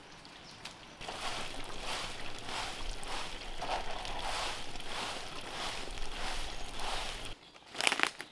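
Water trickles and splashes steadily from a pipe.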